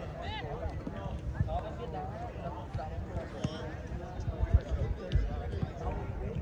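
Young men call out to each other outdoors at a distance.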